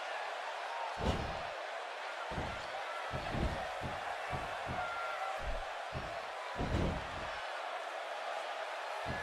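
Bodies thud onto a mat.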